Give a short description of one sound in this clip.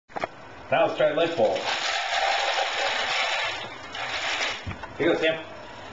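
Kibble rattles into a plastic bowl.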